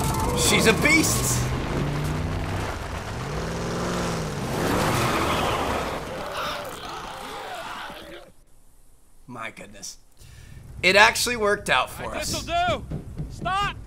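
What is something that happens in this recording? A young man laughs close to a microphone.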